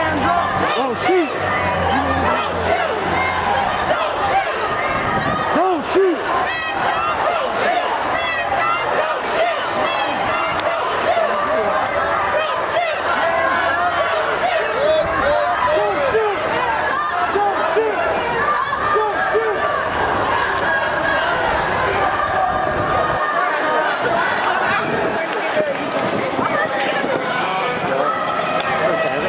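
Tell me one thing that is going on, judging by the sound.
A large crowd of men and women chants and shouts together outdoors.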